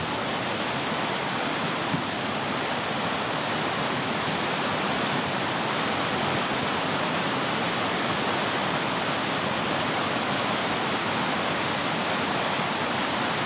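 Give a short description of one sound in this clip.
A mountain stream rushes loudly over rocks close by.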